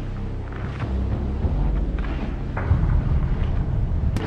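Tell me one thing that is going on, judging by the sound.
Boots thud slowly on dirt.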